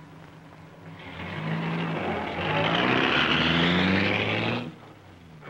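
A car engine revs and roars as the car pulls away.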